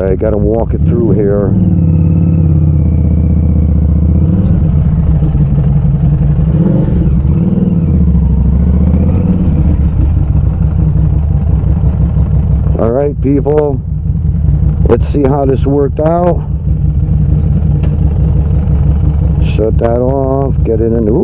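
A motorcycle engine revs sharply in short bursts.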